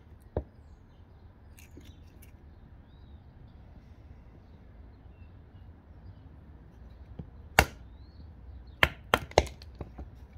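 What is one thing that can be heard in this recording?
A blade chops into a log with sharp knocks.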